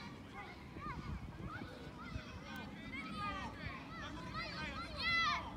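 Children shout and call out in the distance outdoors.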